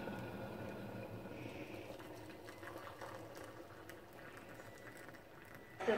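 Water pours into a cup.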